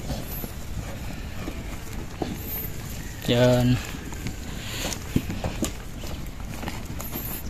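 Cattle hooves trample across soft dirt.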